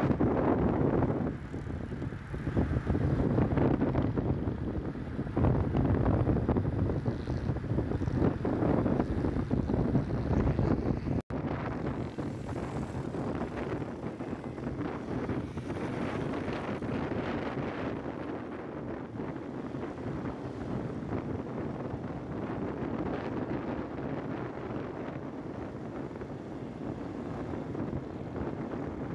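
Wind rushes past while riding on an open road.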